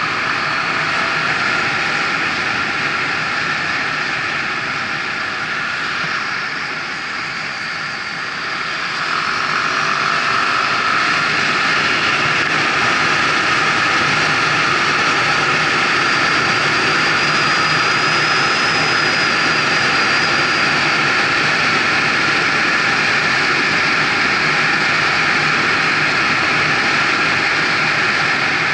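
A car engine hums steadily and grows louder as it speeds up.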